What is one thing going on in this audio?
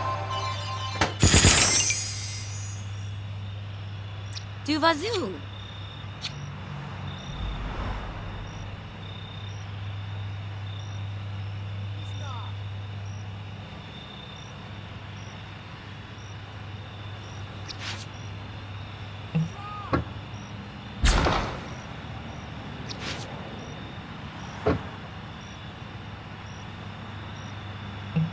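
Short game chimes and pops sound now and then.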